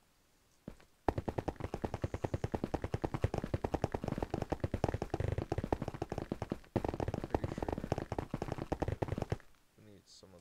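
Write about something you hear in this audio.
A pickaxe chips rapidly at stone in quick, steady knocks.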